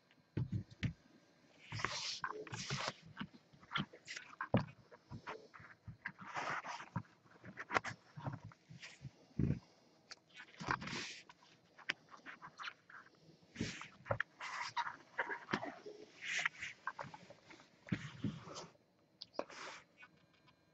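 A plastic case knocks and clicks as it is handled up close.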